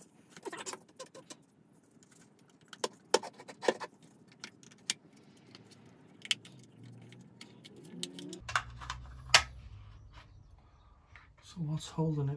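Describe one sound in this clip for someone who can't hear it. Small plastic parts click and tap as a device is pried apart.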